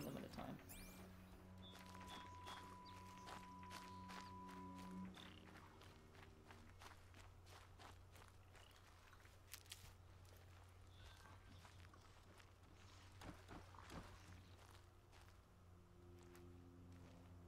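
Footsteps crunch over dry ground.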